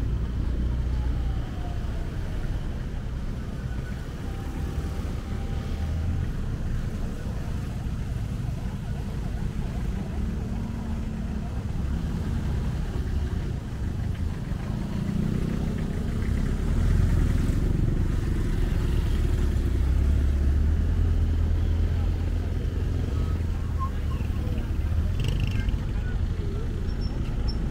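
Engines rumble steadily from traffic on a road outdoors.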